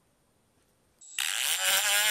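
A power drill spins a grinding disc with a loud, high whine.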